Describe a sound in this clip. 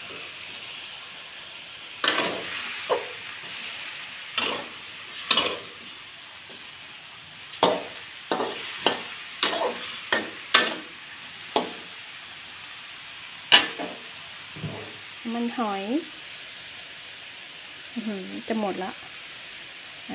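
Food sizzles softly in a hot wok.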